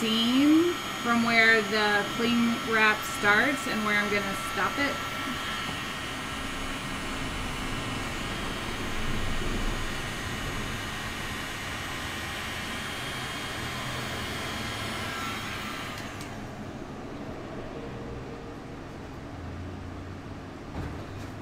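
A heat gun blows with a steady whooshing hum.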